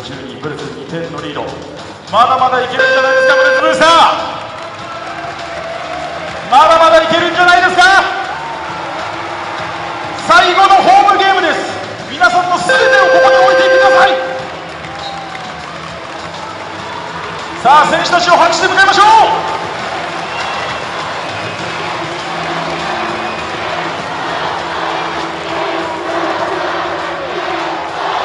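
A large crowd murmurs and cheers steadily.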